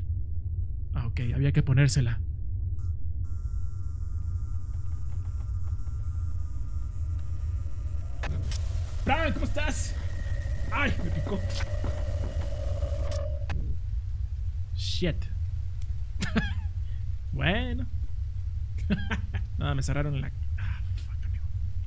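A young man talks and laughs with animation into a close microphone.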